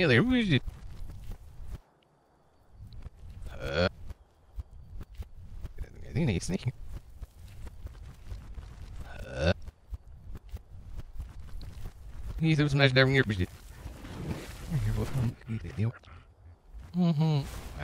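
Heavy animal footsteps thud steadily on soft ground.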